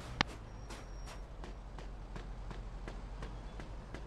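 Footsteps crunch on snow as a man runs.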